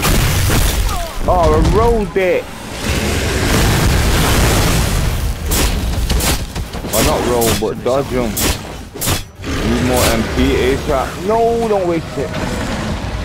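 A large beast growls and roars loudly.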